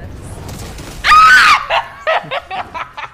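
A young woman exclaims loudly into a close microphone.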